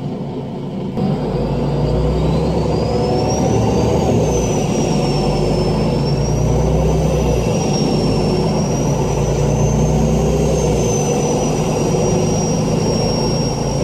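A tram motor hums and whines as it rolls along and picks up speed.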